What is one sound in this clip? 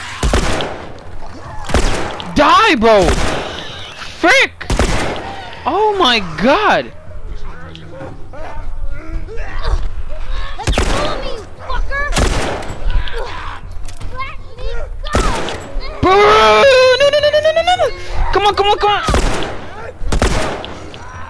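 A pistol fires several sharp shots that echo.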